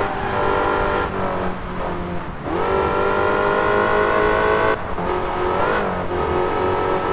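A car engine roars loudly, rising in pitch as it accelerates and dropping briefly with each gear change.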